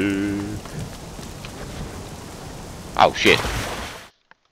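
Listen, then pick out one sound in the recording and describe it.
A body thuds heavily onto hard ground.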